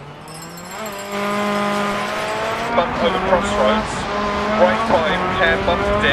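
A rally car engine roars loudly as the car accelerates and shifts gears.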